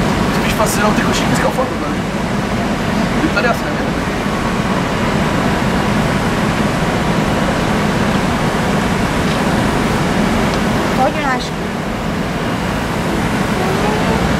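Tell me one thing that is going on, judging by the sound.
A fire hose sprays water onto a burning roof with a steady hiss.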